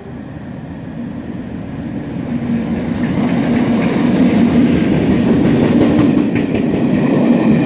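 A diesel train engine roars, growing louder as it approaches.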